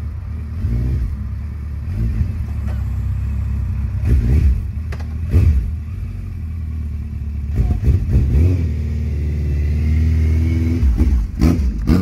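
A motorcycle engine idles with a deep rumble and revs up in short bursts.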